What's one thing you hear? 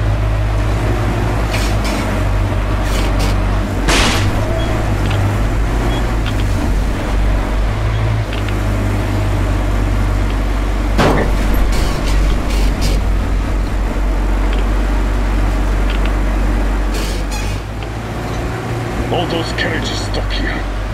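A train engine rumbles low and steady throughout.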